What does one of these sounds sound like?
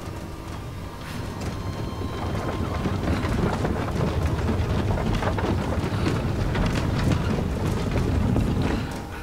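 A heavy cart rumbles and clatters along a wooden track.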